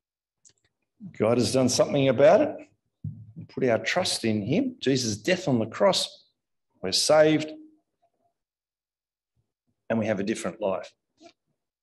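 A middle-aged man speaks with animation into a microphone, in pauses.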